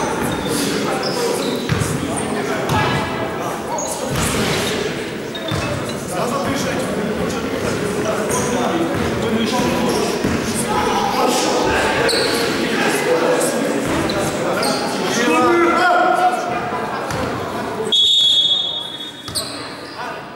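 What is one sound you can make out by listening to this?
Basketballs bounce on a wooden court.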